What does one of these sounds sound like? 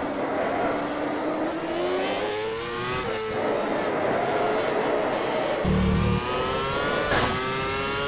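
A racing car engine revs back up out of slow corners.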